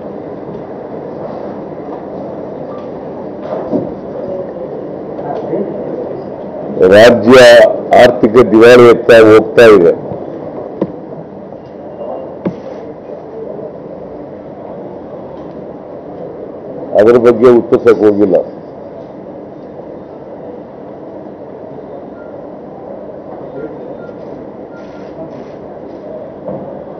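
A man speaks calmly into microphones.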